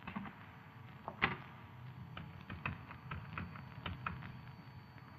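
Telephone buttons click as they are pressed.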